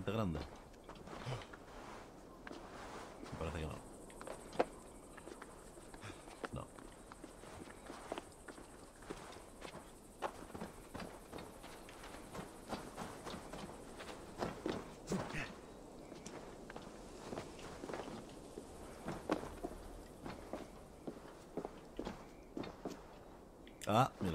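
A man talks quietly into a microphone, close by.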